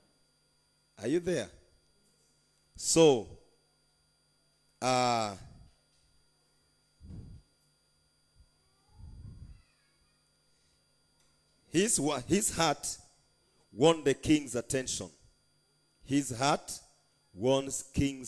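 A man speaks into a microphone with emphasis, in short bursts separated by pauses.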